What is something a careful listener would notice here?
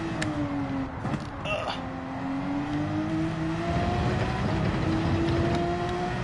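A racing car's engine hums steadily, dipping and then rising in pitch as it speeds up.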